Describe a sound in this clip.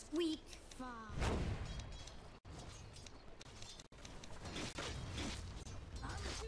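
Fighting sound effects clash and crackle in quick bursts.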